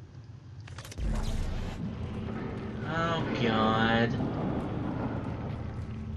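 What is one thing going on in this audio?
A weapon hums and crackles as it charges and fires.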